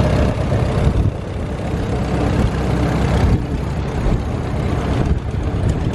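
A second tractor engine putters as the tractor approaches.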